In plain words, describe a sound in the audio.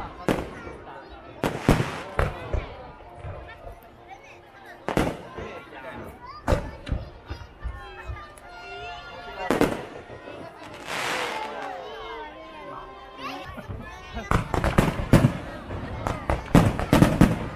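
Fireworks crackle and fizzle.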